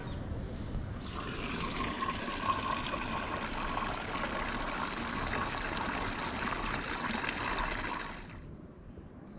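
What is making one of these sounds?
Water splashes steadily in a nearby fountain.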